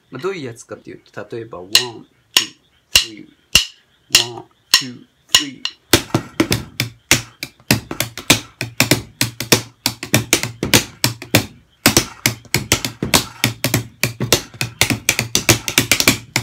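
Wooden drumsticks beat a fast rhythm on cardboard boxes.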